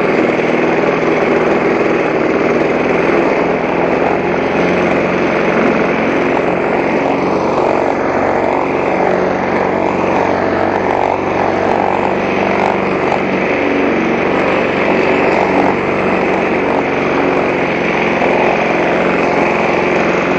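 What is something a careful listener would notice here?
A petrol lawn mower engine roars steadily up close.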